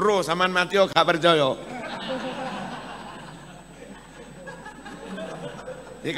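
A crowd of men laughs.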